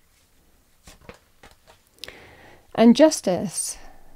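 Playing cards riffle and flick in a pair of hands.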